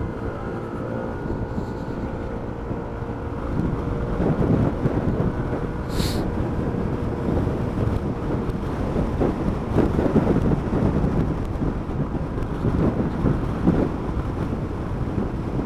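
Wind buffets loudly against a helmet.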